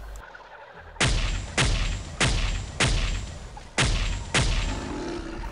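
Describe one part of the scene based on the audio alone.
A heavy gun fires a series of loud booming shots, each ringing out briefly.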